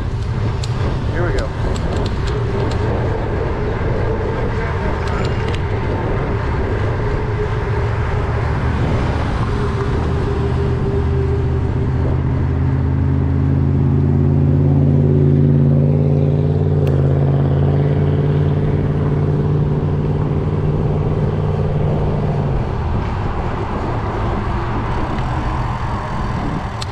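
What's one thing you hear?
Wind buffets the microphone steadily as a bicycle rides along.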